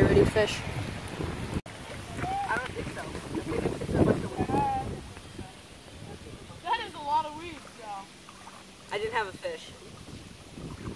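Young boys talk and exclaim excitedly outdoors.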